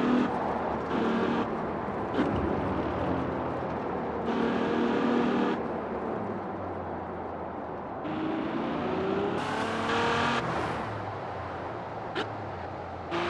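A racing car engine roars loudly, revving up and down as it shifts gears.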